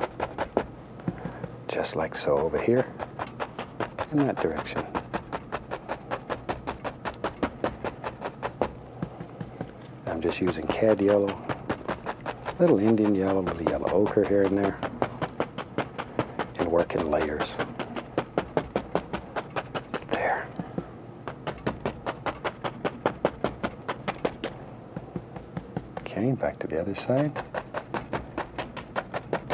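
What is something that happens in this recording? A brush taps and scrubs rapidly against a canvas.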